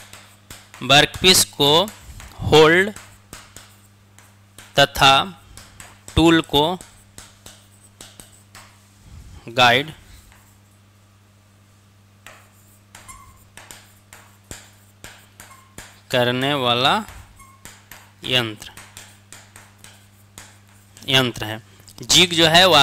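A pen taps and scratches on a board.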